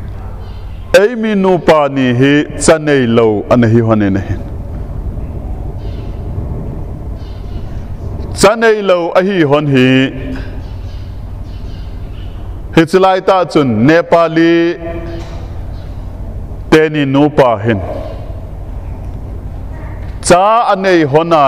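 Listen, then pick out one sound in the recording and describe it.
A man speaks through a microphone in short, emphatic bursts with pauses between them.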